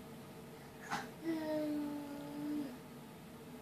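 A baby coos and squeals briefly.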